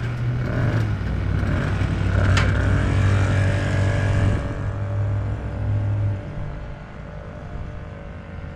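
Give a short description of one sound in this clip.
A small moped engine drones steadily, then rides off and fades away.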